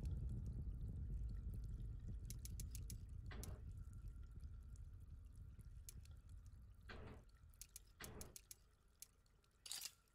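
The dials of a metal combination lock click as they turn.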